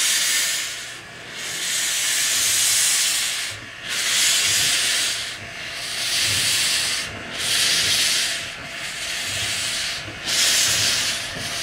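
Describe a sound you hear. A steam locomotive chuffs in heavy, rhythmic bursts as it pulls away.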